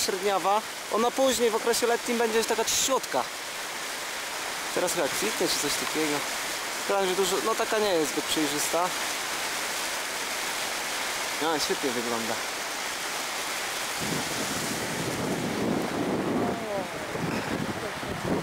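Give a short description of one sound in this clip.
A river rushes steadily over shallow rapids.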